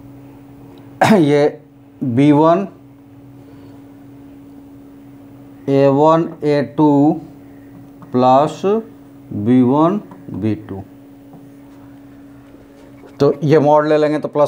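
A man speaks in bursts through a close microphone, explaining calmly.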